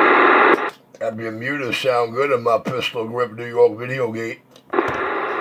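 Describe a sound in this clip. A man talks through a crackly radio loudspeaker.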